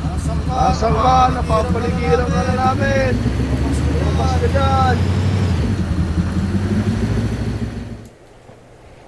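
An off-road buggy engine roars while driving over grass.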